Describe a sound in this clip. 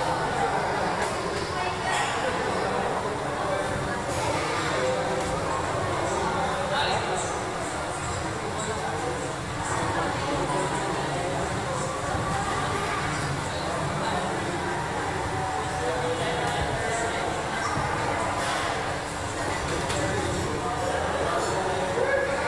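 A crowd murmurs and chatters in an echoing hall.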